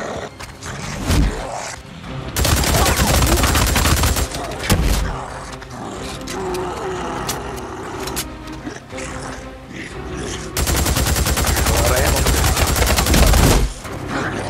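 A monster snarls and growls up close.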